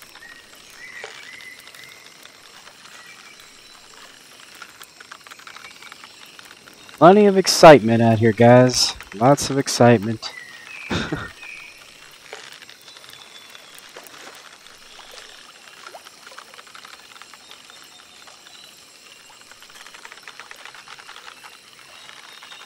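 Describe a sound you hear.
A fishing reel clicks softly as line is wound in.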